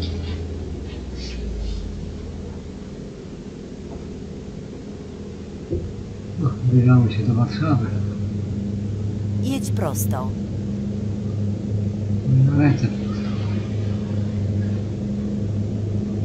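A truck engine hums steadily at a low pitch.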